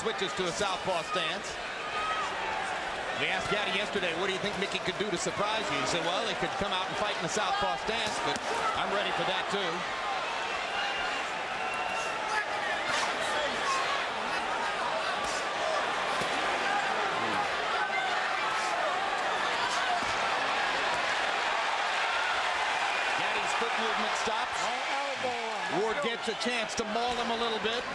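Punches thud against bodies.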